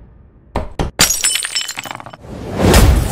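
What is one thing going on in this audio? Glass cracks and tinkles.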